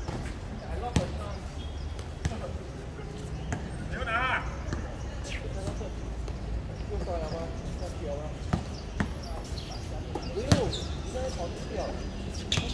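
A basketball bounces sharply on an outdoor court.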